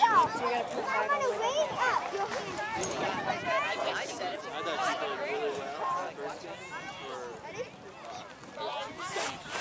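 Young women chatter and call out outdoors.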